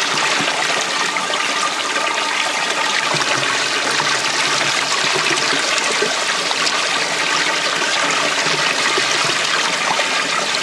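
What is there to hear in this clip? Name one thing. Water pours from a fountain spout and splashes into a pool.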